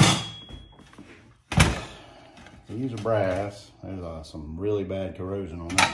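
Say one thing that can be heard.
Metal plates clink against each other.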